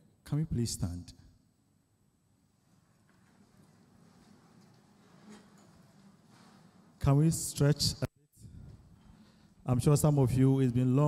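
A man speaks into a microphone over loudspeakers, with pauses, in an echoing hall.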